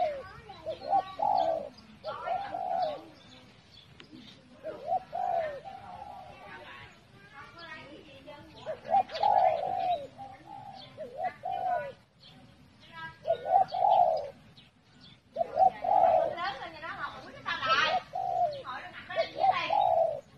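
A bird calls over and over with short, warbling notes.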